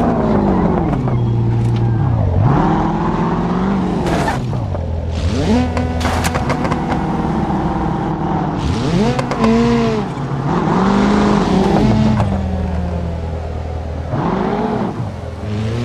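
A car engine revs up and down repeatedly.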